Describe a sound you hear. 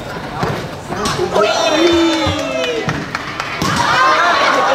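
Spectators cheer and shout excitedly.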